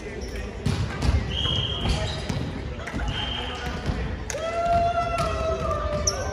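A volleyball thumps against hands and the floor.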